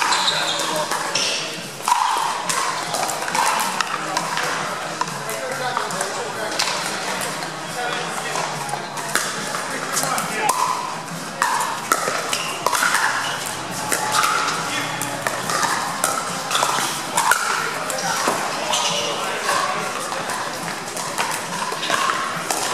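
Paddles hit a plastic ball with sharp pops.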